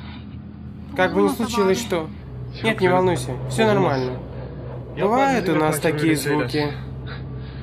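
A young man talks and laughs cheerfully, close by.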